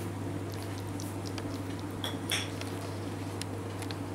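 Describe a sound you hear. A kitten laps milk with quick, soft licks.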